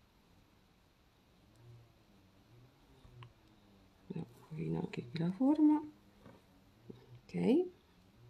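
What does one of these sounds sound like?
Yarn rustles softly as fingers pull a stitch through crochet work.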